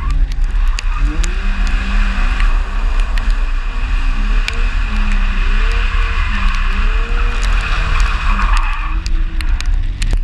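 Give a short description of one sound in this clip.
Tyres squeal on wet tarmac.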